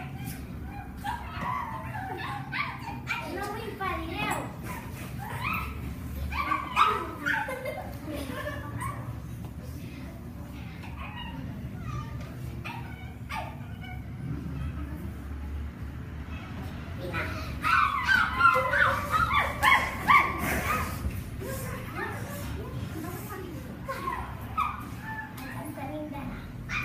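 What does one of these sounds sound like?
Young children talk and shout excitedly nearby.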